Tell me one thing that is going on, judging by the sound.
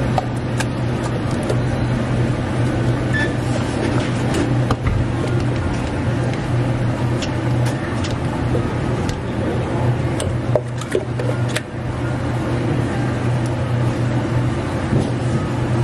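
A thick smoothie slops into a cup.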